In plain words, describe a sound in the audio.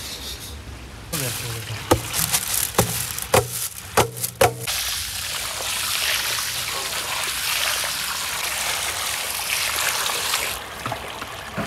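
Water pours and splashes onto rice.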